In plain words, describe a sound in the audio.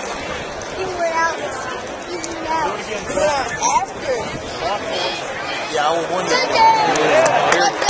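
A large outdoor crowd cheers and shouts, growing louder.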